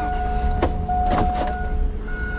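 A car door latch clicks.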